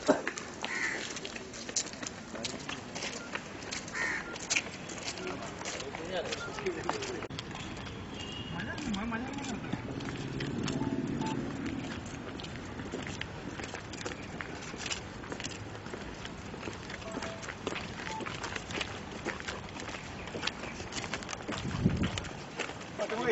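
Men talk among themselves nearby, outdoors.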